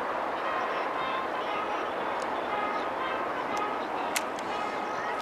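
A crowd of spectators chatters and cheers in the distance outdoors.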